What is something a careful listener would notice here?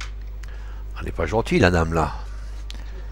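A man groans in pain close by.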